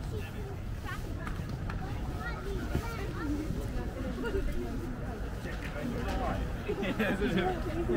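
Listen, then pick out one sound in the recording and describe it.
Young men and women nearby talk and chatter, outdoors, growing closer.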